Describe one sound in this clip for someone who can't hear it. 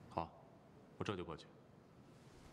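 A younger man answers in a few quiet words.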